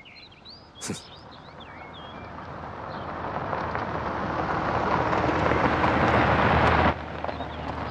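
A car engine rumbles closer and grows louder, then cuts off.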